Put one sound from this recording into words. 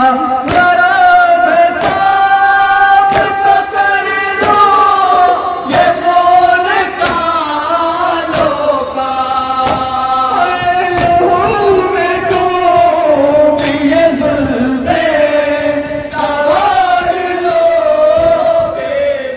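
A man chants loudly through a microphone and loudspeakers.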